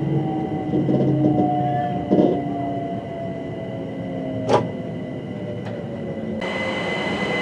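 A train rumbles along the rails with a steady hum.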